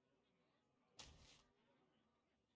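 A computer game plays a short whoosh as a card lands.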